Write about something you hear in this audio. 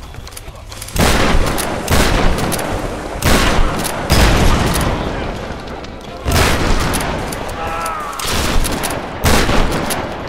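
Gunshots ring out loudly in bursts, each followed by a rumbling echo.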